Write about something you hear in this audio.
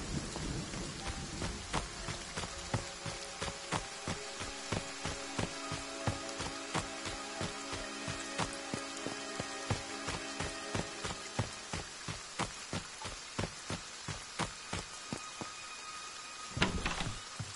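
Quick footsteps run over the ground.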